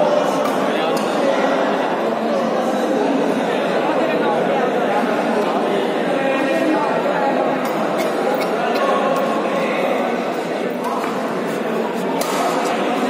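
A crowd chatters steadily, echoing through a large hall.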